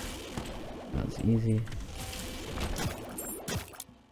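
Creatures splatter wetly in a video game.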